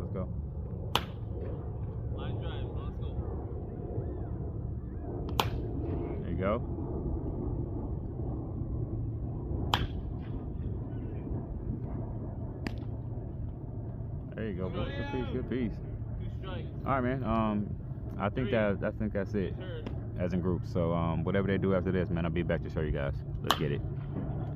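A bat cracks sharply against a baseball, again and again.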